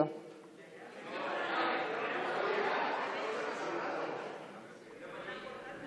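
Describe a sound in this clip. A crowd in a large hall applauds.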